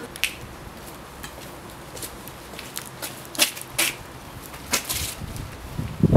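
Footsteps and a cane tap on a paved path.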